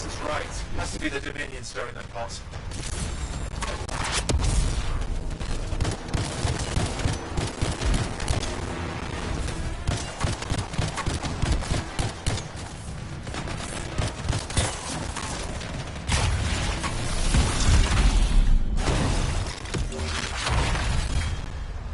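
Energy blasts explode with deep booms.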